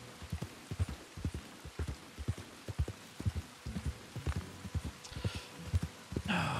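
Horse hooves thud steadily at a gallop on a dirt track.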